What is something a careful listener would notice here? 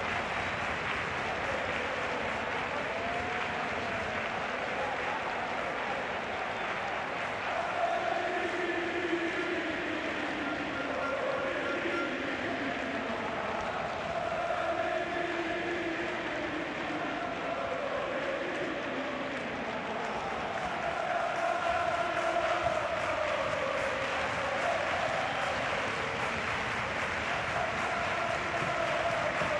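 A large stadium crowd cheers and chants throughout.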